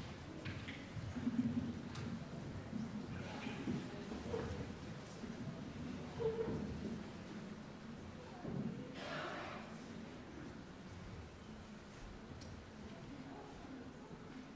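Young men talk quietly on a stage, distant and echoing in a large hall.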